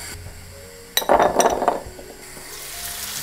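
A glass lid clinks onto a pan.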